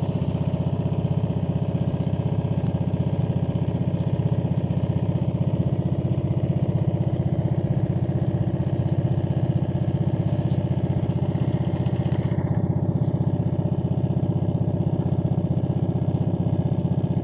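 A small boat's engine chugs steadily and loudly close by.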